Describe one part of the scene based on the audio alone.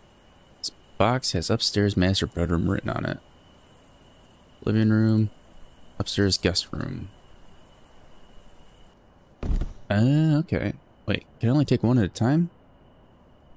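A man talks with animation into a microphone, close by.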